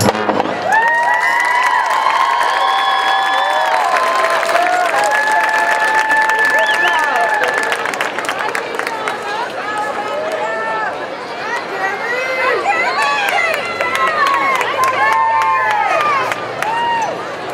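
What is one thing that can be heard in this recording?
A marching band plays brass instruments loudly outdoors.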